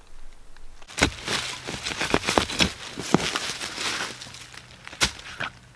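A trowel digs and scrapes through dry leaves and soil.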